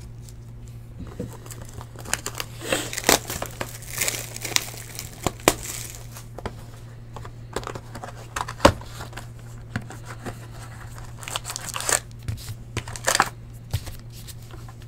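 Cardboard and plastic packs rustle and crinkle as hands handle them.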